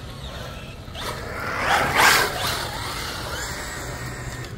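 A small electric motor whirs loudly as a toy car speeds past up close.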